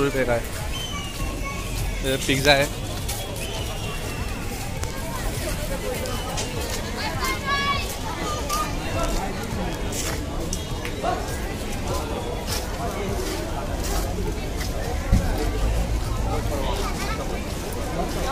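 A busy crowd chatters and murmurs all around outdoors.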